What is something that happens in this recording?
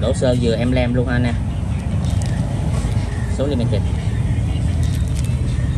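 A plastic bag crinkles as it is handled.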